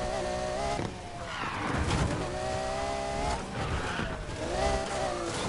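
Tyres screech as a car skids and slides.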